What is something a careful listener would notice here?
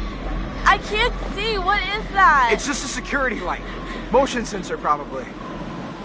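A young man speaks.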